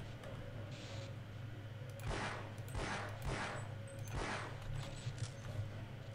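A weapon clicks and clatters as it is switched.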